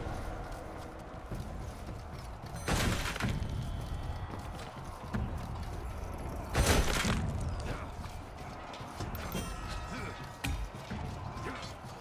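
Heavy footsteps thud on wooden boards and stairs.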